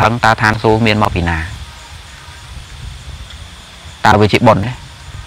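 A man speaks calmly and close to the microphone, pausing between phrases.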